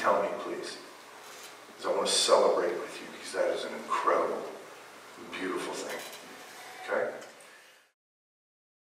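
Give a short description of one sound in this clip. A man speaks with animation through a microphone in an echoing room.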